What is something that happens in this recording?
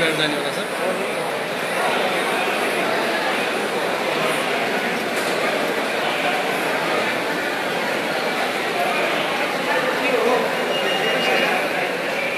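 A crowd of people chatters loudly in a large echoing hall.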